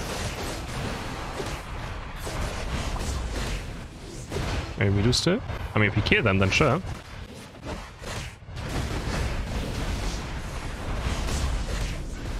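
Video game blasts and hits crackle and whoosh.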